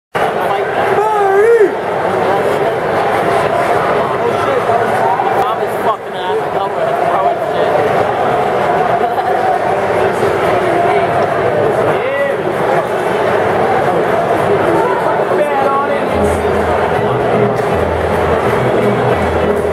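A large crowd murmurs and cheers in a big open stadium.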